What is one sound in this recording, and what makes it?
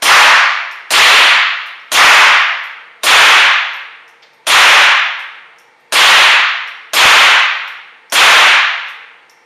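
A rifle fires loud single shots at a steady pace, each ringing out in an enclosed room.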